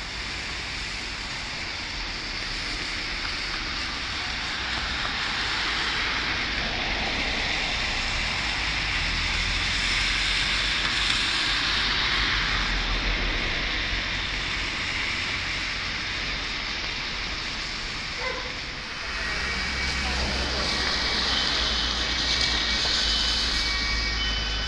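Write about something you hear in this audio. Wind blows outdoors, rumbling low.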